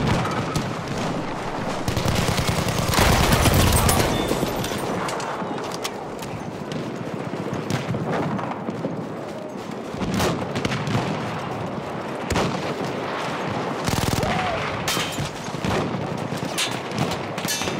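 Footsteps crunch over rubble and snow.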